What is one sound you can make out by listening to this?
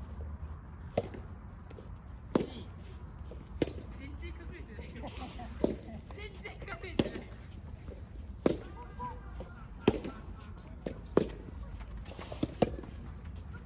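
Tennis rackets strike a ball in a steady rally.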